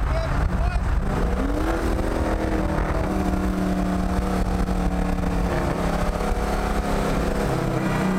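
A car engine roars loudly, rising in pitch and then droning steadily.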